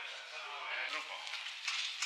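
A metal cart shaft rattles as a man drags it.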